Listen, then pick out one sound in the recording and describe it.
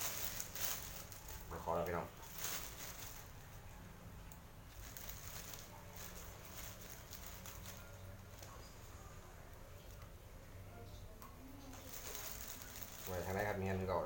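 Small objects clink softly as a man handles food.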